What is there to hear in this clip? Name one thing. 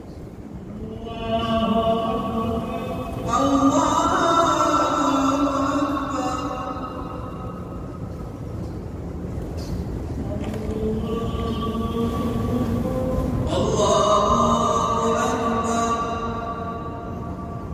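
A woman chants slowly and melodically, close by.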